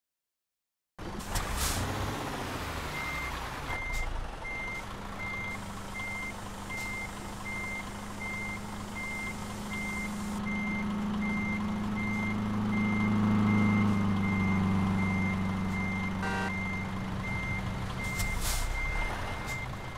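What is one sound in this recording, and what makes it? A truck engine rumbles steadily and grows louder.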